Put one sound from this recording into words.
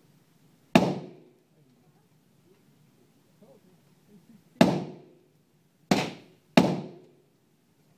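A rifle fires loud single shots that echo briefly indoors.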